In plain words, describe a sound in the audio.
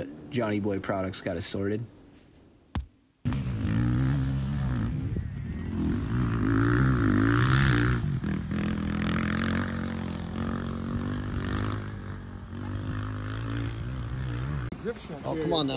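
A dirt bike engine revs up and down.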